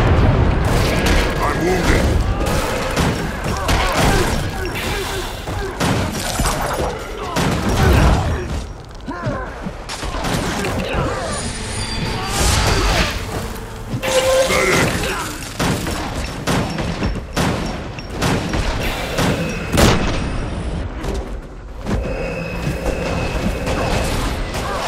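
Weapons clash and magic crackles in a fast fight.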